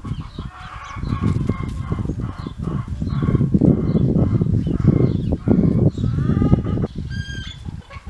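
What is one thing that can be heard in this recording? A dog snuffles and sniffs close by.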